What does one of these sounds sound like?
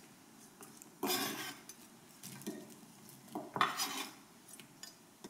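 Pieces of chopped vegetables drop into a pot with light knocks.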